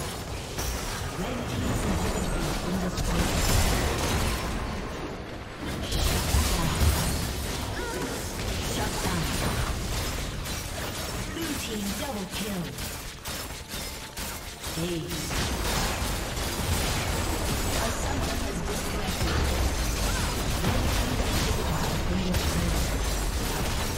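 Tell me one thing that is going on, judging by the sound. Fantasy battle sound effects burst, clash and crackle in quick succession.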